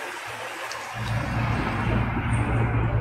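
Soda pours from a bottle into a cup with a splashing gurgle.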